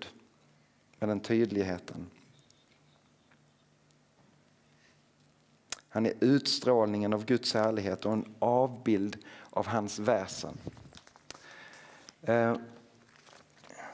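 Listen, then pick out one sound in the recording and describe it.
A middle-aged man speaks calmly into a microphone, reading aloud with pauses.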